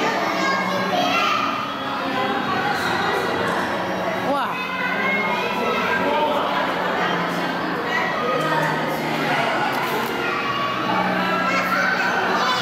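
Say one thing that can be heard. Many people chatter and murmur in an echoing hall.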